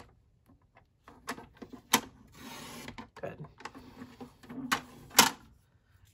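A paper trimmer blade clicks and slides along its rail.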